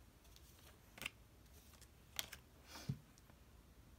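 Playing cards tap and slide onto a table.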